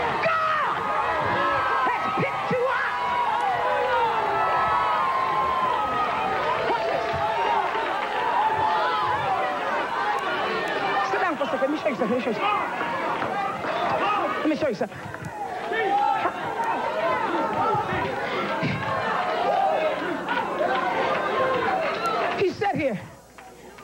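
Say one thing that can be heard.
A large crowd sings and cheers loudly in an echoing hall.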